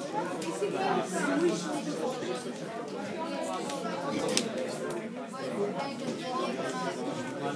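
Several young people talk nearby in a busy, echoing room.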